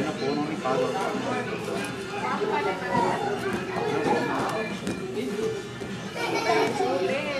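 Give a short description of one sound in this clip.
A fabric play tunnel rustles as a baby pushes against it.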